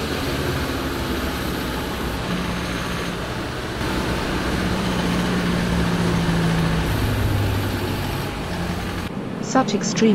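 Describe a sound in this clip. A heavy truck engine rumbles as it drives along.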